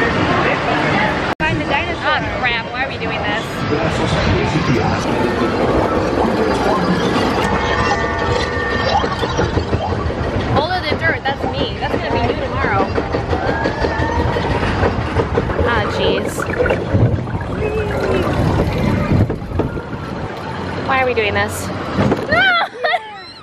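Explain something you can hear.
A roller coaster rattles and rumbles along its track.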